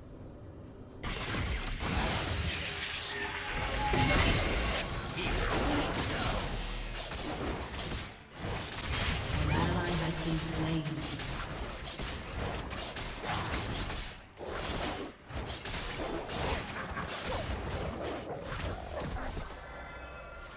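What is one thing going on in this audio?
Game sound effects of fighting clash, swoosh and crackle.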